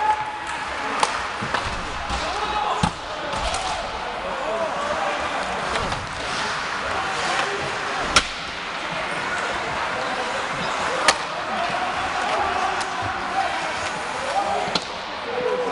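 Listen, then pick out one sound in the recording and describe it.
Hockey sticks and pucks clack sharply on the ice.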